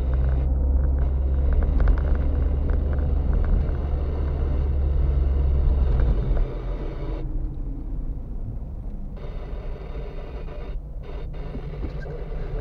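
Tyres roll over a rough road surface.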